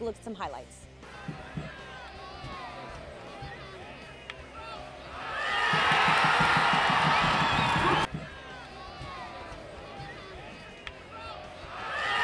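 A crowd murmurs and calls out at an outdoor match.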